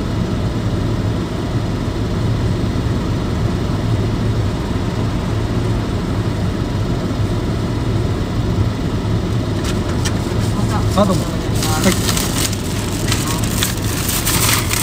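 A car engine idles with a low, steady hum, heard from inside the car.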